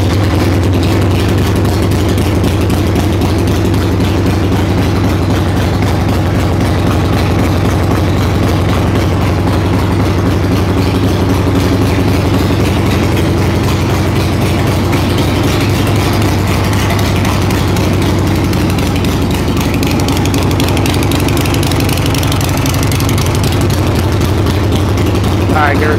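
A motorcycle engine idles loudly with a steady low rumble.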